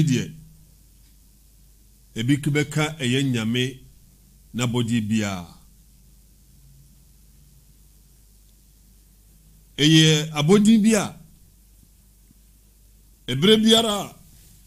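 A man recites in a slow, melodic chant into a close microphone, with long pauses between phrases.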